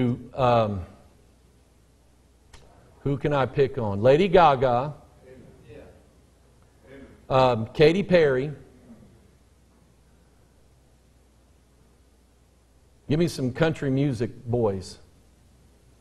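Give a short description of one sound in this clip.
A middle-aged man preaches with emphasis over a microphone, pausing between phrases.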